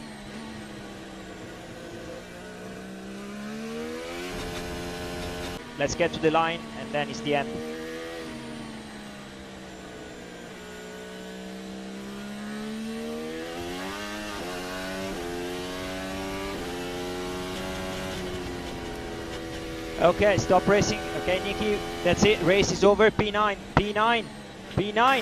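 A racing car engine screams at high revs, rising and falling in pitch with gear changes.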